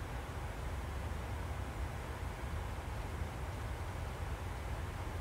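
A jet airliner's engines hum with a steady low drone.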